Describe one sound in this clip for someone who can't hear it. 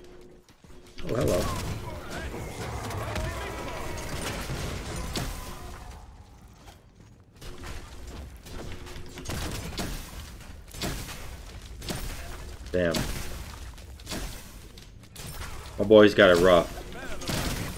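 Game sound effects of fighting clash and burst.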